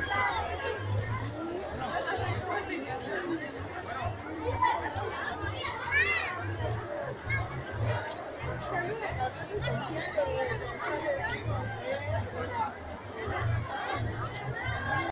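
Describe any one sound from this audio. A large outdoor crowd chatters and calls out all around.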